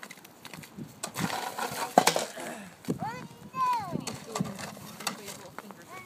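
A shovel scrapes across wet snow and pavement.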